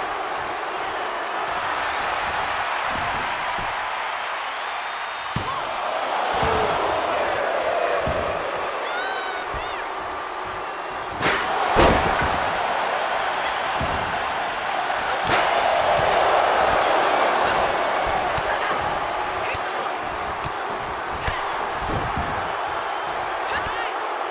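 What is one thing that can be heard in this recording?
A large arena crowd roars and cheers throughout.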